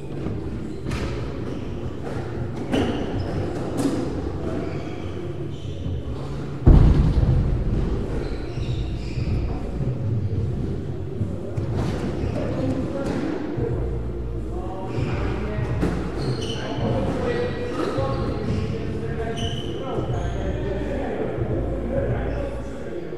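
A squash ball smacks against the walls and racquets, echoing in the court.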